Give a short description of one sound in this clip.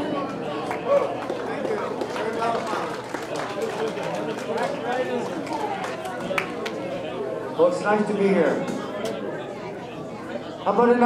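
A band plays country music on guitars.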